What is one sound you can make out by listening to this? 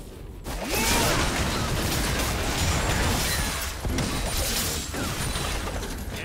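Fantasy battle sound effects of spells and strikes clash in a video game.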